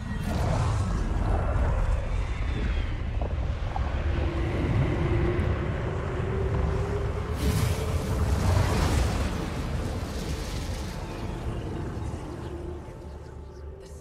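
A deep roaring wind rumbles and howls.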